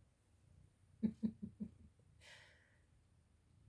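A tiny kitten mews in short, high squeaks close by.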